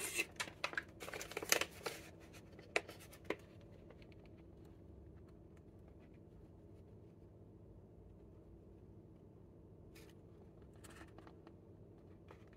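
A plastic wrapper crinkles and rustles in hands.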